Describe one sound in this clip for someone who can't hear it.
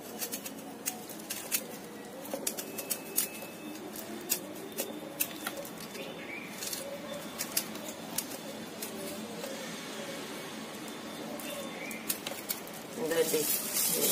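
A knife scrapes soft food from a plastic bag.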